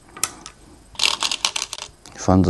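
Stones rattle in a bowl as a hand reaches in.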